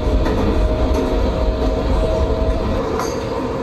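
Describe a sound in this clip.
A train's electric motor hums steadily.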